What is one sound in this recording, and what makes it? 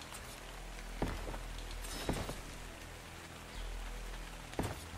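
Heavy stone blocks thud into place.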